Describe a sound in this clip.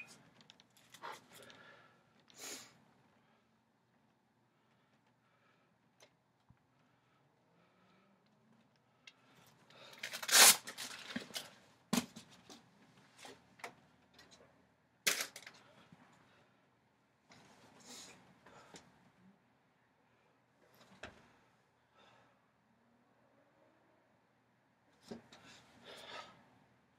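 A young man breathes out sharply in quick bursts close by.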